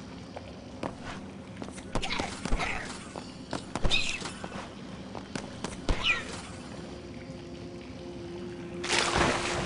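Footsteps clank on a metal grating.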